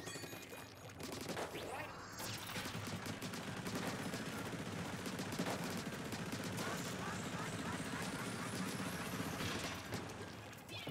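A video game weapon sprays ink in rapid bursts.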